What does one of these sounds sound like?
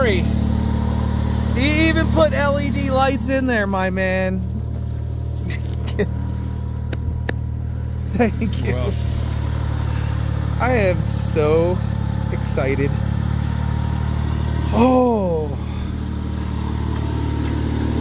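A mower engine idles with a steady low rumble.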